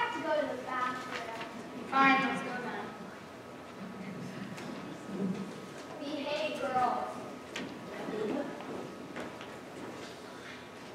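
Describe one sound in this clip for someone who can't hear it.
A young woman speaks and sings out in a large hall.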